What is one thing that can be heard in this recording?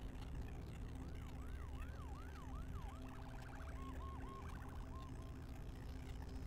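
A siren wails in short bursts nearby.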